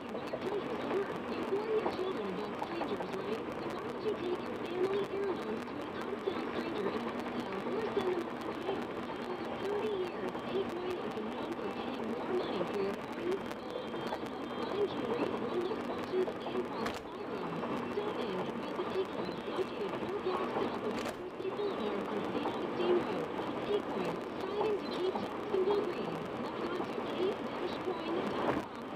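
Tyres hum steadily on a highway from inside a moving car.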